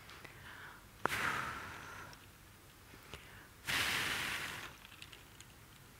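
A woman blows air in short puffs close to a microphone.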